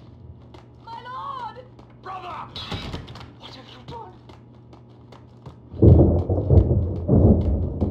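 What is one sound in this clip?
Footsteps thud on concrete stairs.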